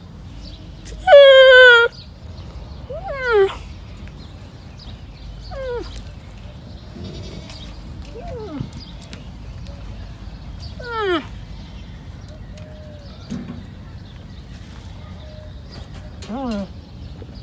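A young camel bleats loudly up close, again and again.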